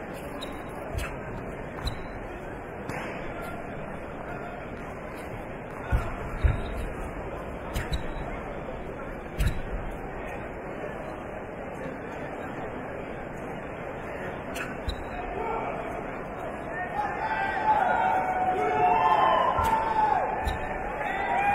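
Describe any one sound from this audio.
Bare feet thump and stamp on a mat.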